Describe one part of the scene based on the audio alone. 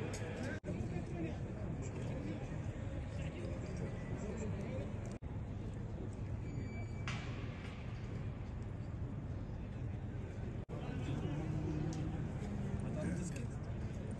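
Several men talk among themselves at a distance, outdoors in an open echoing space.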